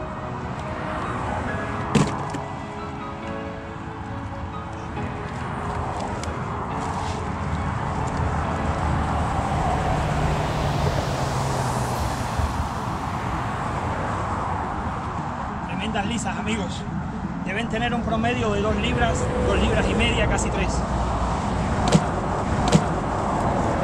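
Fish flap and slap against concrete.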